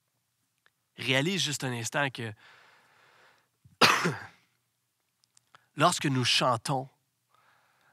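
A man speaks with animation into a microphone, heard in a reverberant hall.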